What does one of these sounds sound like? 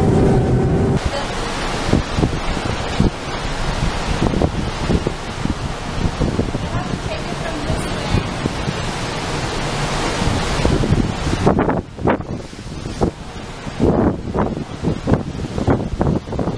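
Rough sea waves churn and splash below.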